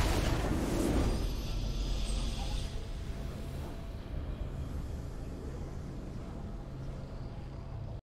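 A short triumphant game fanfare plays.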